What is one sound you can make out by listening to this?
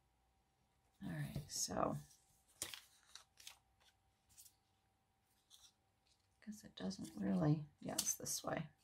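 Stiff card rustles and taps as it is handled and folded.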